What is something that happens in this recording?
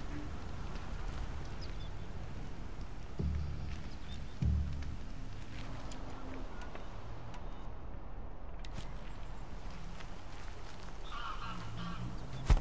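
Footsteps rustle through leafy undergrowth.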